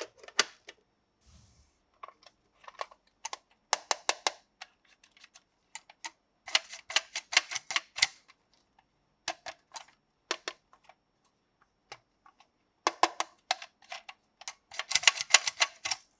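Plastic toy parts click and clatter as they are handled.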